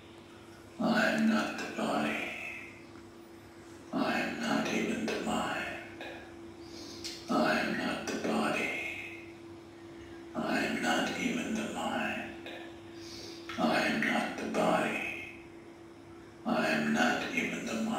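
A young woman speaks calmly and slowly, in short phrases with pauses between them.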